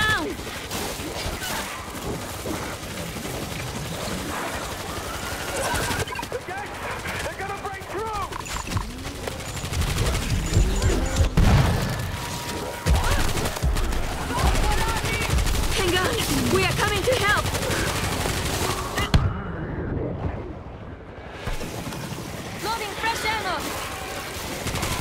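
Zombies growl and shriek.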